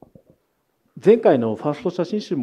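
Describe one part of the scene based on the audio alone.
A young woman speaks into a microphone with animation, heard through a loudspeaker.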